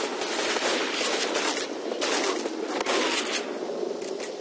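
Shotgun blasts boom in quick succession.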